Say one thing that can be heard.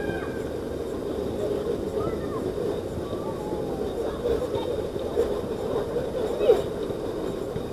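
Young men shout and call out to each other in the distance, outdoors.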